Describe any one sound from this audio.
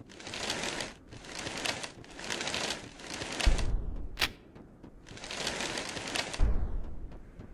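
Swishing whooshes rush past in repeated bursts.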